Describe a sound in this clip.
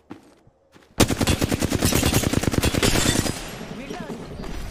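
An automatic rifle fires rapid bursts close by.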